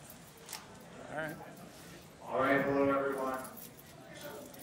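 A man speaks into a microphone, heard through loudspeakers in a large echoing room.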